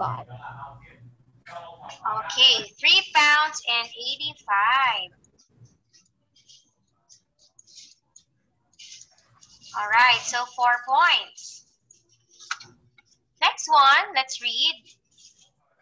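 A young woman speaks calmly and clearly over an online call, in bursts with pauses.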